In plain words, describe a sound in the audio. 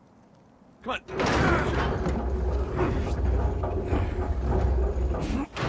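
A heavy wooden door scrapes and grinds as it is pushed.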